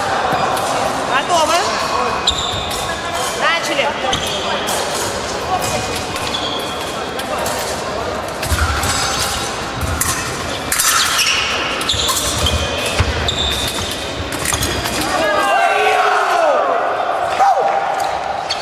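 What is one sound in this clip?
Shoes squeak sharply on a wooden floor.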